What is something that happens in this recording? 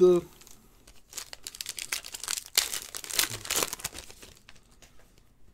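A foil card wrapper crinkles and tears open.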